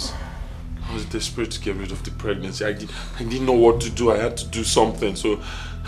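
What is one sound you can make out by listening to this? A man speaks earnestly close by.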